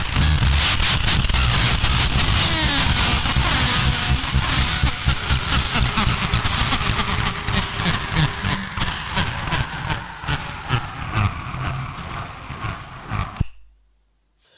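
Droning, crackling electronic noise plays and fades out.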